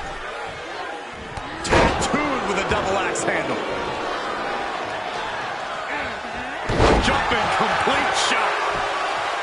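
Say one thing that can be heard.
A crowd cheers loudly throughout.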